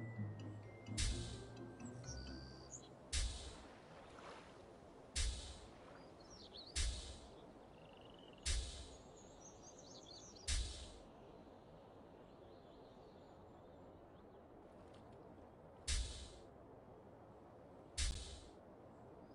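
A pogo stick bounces with heavy, springy thumps every couple of seconds.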